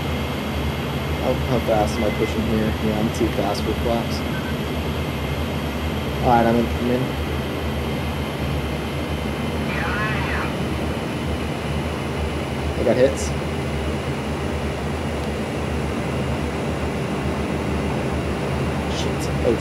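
A propeller engine drones steadily and loudly.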